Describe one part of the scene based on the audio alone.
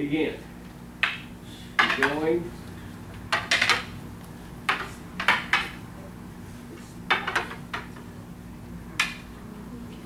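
Wooden staffs clack together sharply.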